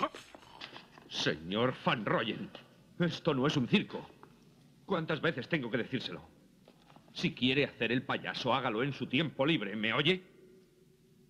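A man answers calmly nearby.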